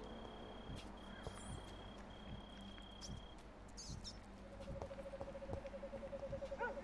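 Footsteps thud slowly on stone.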